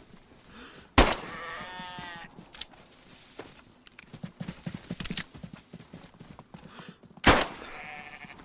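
A pistol fires loud sharp shots.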